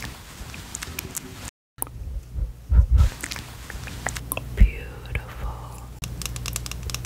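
Fingernails tap and click on a plastic compact case.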